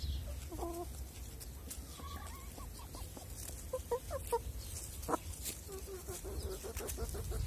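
Hens cluck softly and repeatedly close by.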